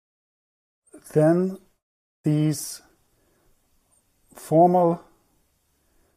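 A man speaks calmly in short phrases, close to a microphone.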